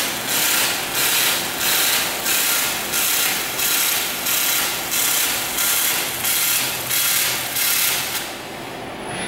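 An arc welder crackles and hisses in rapid pulses.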